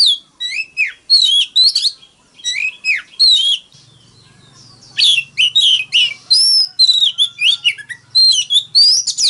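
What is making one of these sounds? A songbird sings loud, rich whistling phrases up close.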